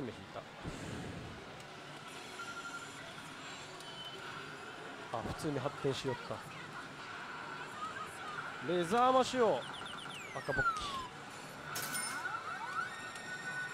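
A slot machine plays electronic sound effects and music.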